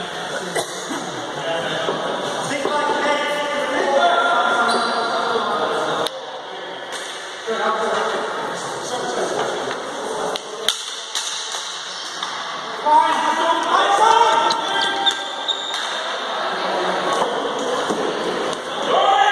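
Players shout and call out across a large echoing sports hall.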